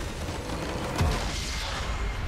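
A nexus explodes with a loud blast.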